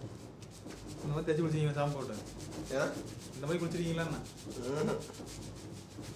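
A man speaks briefly nearby.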